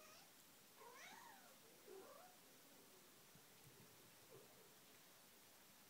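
Cats' paws patter softly on a wooden floor.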